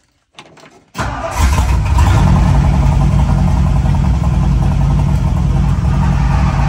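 An old engine idles with a loud, steady rumble.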